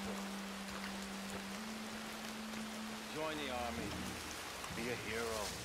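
Footsteps rustle softly through grass.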